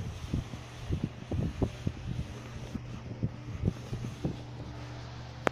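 Paper crinkles and rustles as fingers handle it.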